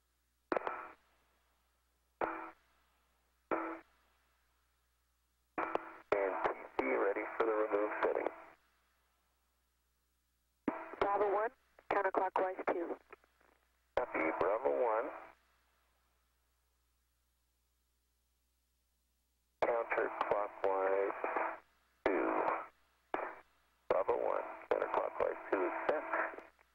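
A man speaks calmly over a radio link in short bursts.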